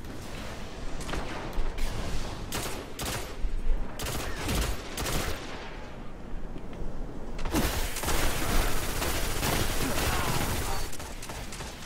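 Rapid gunfire bursts crack repeatedly.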